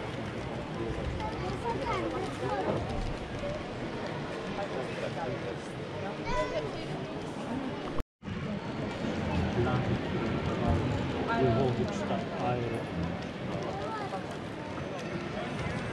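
A model train rumbles softly along its track.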